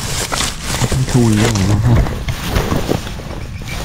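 Dry grass rustles and crackles as a hand pushes through it.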